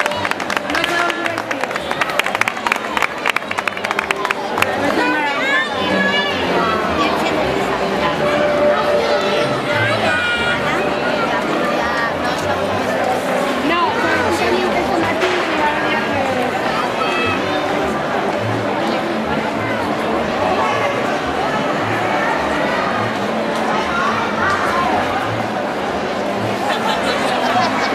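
A crowd of people chatters and murmurs outdoors.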